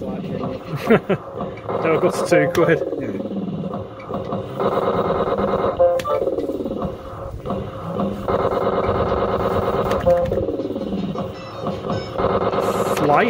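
A slot machine plays a bright electronic jingle.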